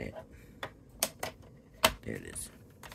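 A plastic paper trimmer arm clicks into place.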